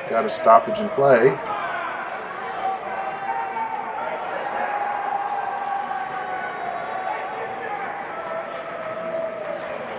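Skates scrape and glide on ice in a large echoing rink.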